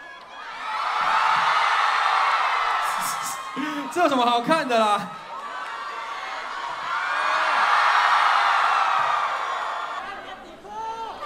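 A large crowd screams loudly, swelling and fading.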